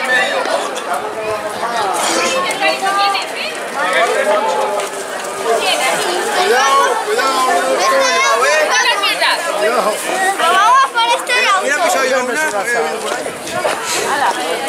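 A crowd of men and women sings together outdoors.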